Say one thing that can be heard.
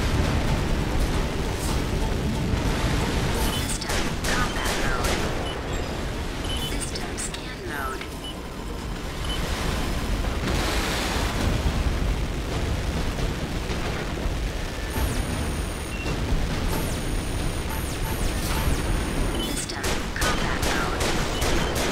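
Jet thrusters roar steadily as a mech flies.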